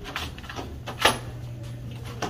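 A door clicks as it swings open.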